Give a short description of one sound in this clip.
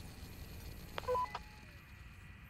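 A short electronic chime sounds as a game window opens.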